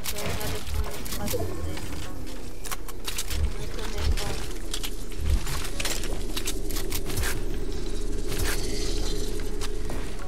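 Building pieces snap into place with short clicks and thuds.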